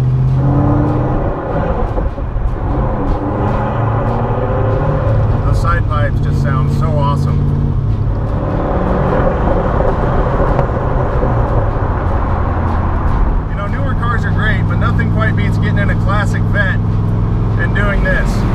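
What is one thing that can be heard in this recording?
A car engine rumbles loudly and steadily as it drives.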